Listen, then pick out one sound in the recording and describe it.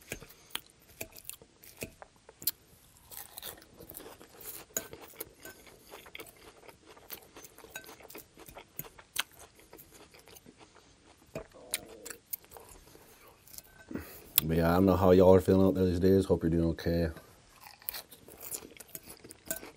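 A fork clinks and scrapes against a glass bowl.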